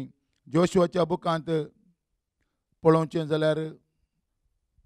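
An elderly man speaks slowly and calmly into a microphone, close by.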